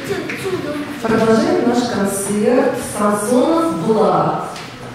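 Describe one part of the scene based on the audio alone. A woman speaks into a microphone in a lively, announcing voice, heard through loudspeakers in an echoing hall.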